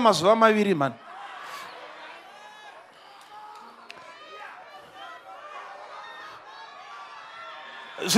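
A large crowd murmurs and calls out.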